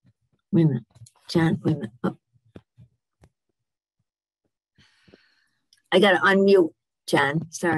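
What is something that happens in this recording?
An elderly woman speaks calmly over an online call, in short bursts with pauses.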